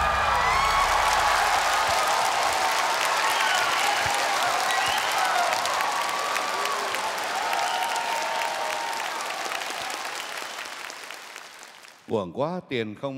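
A large crowd cheers, claps and whistles loudly in a big hall, then fades.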